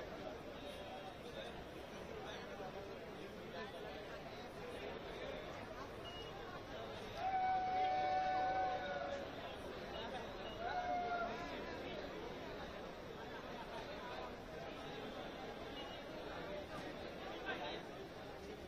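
A large crowd of men chatters all around outdoors.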